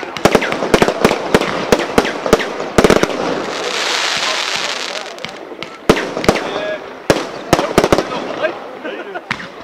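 Fireworks sparks crackle and fizzle after the bursts.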